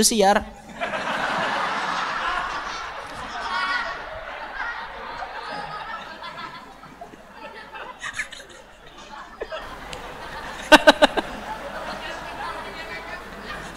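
A crowd of men laughs loudly nearby.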